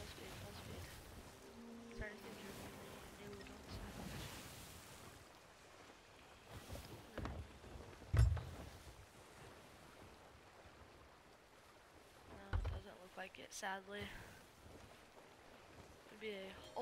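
Ocean waves wash and lap steadily around a wooden ship.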